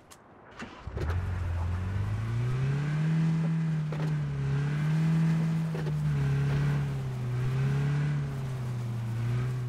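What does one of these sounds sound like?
A vehicle engine starts up and revs steadily as it drives.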